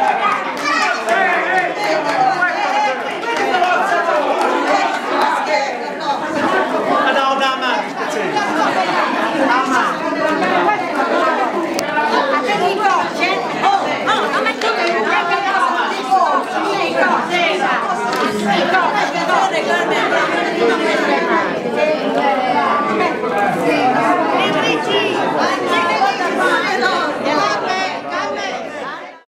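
A crowd of children chatters and shouts excitedly close by.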